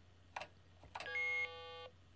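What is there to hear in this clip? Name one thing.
A bright electronic video game chime rings steadily, then stops.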